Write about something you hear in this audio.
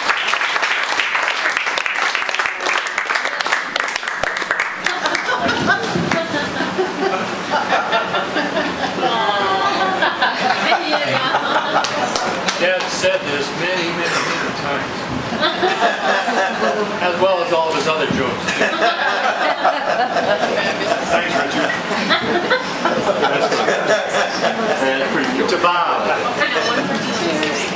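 A crowd of guests chatters and laughs.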